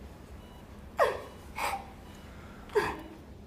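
A woman sobs and gasps close by.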